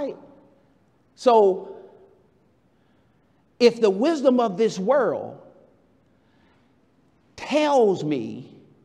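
A man preaches with animation into a microphone, in short bursts with pauses, in an echoing hall.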